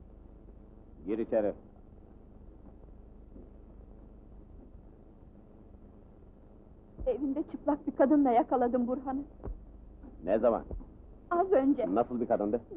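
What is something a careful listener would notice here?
A young woman speaks in a strained voice, close by.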